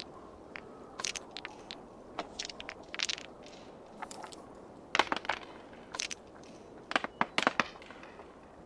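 Dice click as they are moved across a table.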